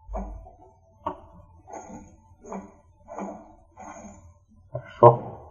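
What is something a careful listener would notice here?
Armoured footsteps clank on grass.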